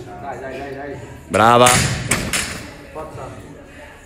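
A barbell drops onto a rubber floor with a heavy thud.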